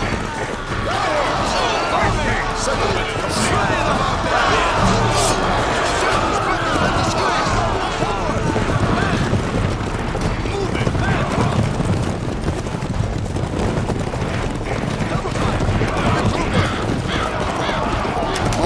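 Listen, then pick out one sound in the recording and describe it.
Many soldiers' footsteps and gear clatter in a busy, steady din.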